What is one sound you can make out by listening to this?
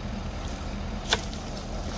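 A plastic pipe knocks once.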